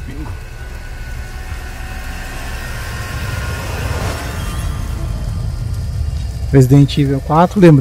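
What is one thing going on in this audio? A fire crackles and roars.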